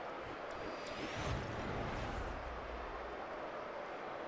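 A deep whoosh with a low rumble sweeps past and fades.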